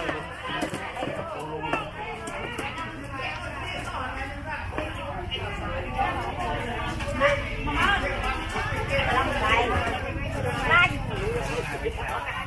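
Many voices of men and women chatter nearby in a busy outdoor crowd.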